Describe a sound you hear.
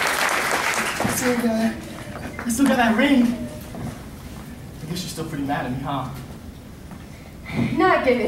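A young man speaks into a microphone over a loudspeaker in a large echoing hall.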